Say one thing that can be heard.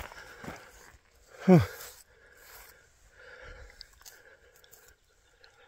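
A hand rubs across rough rock.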